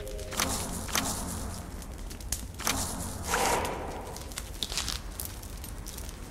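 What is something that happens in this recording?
A campfire crackles softly under a hanging pot.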